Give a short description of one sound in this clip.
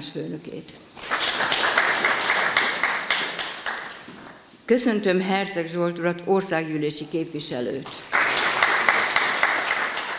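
A small group of people applauds.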